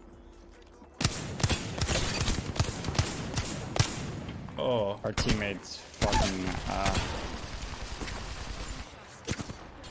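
Guns fire in rapid bursts close by.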